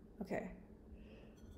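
A young woman speaks briefly and cheerfully, close by.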